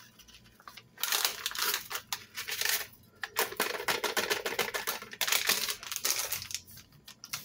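Dry seasoning rustles as it is shaken into a pot.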